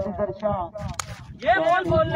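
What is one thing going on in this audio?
A bat strikes a cricket ball with a sharp crack.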